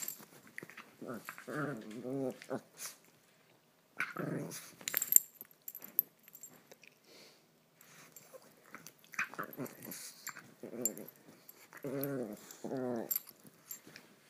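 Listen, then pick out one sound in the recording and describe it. A dog growls and grumbles playfully up close.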